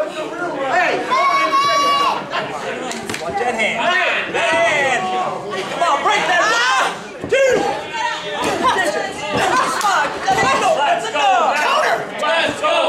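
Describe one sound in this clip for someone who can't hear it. A crowd of men and women shouts and cheers loudly in an echoing hall.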